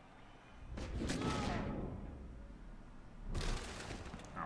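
A heavy body blow lands with a thud.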